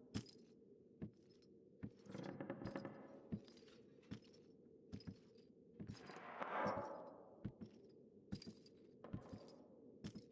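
Soft footsteps pad slowly across a hard floor.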